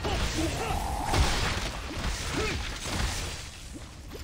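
Blades slash and strike a creature with heavy, wet thuds.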